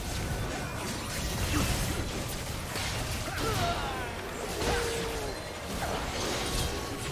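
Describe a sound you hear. Game hits and blasts thud and clash rapidly.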